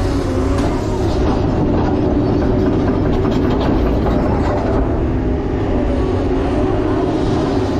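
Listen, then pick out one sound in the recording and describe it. Hydraulics whine as an excavator arm moves.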